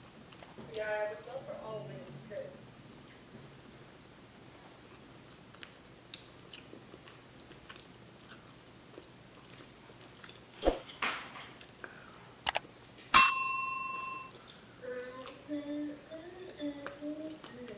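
A young woman bites and chews crunchy food close to a microphone.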